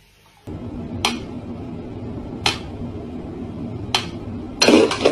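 A metronome ticks slowly and steadily.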